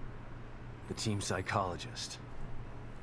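A man speaks in a low, tired voice.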